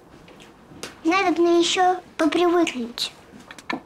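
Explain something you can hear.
A young girl answers softly.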